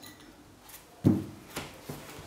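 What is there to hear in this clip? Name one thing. A metal block knocks down onto a hard surface.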